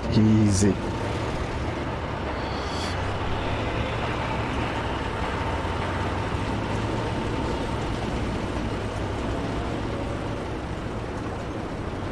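A truck engine rumbles steadily as the truck pulls away.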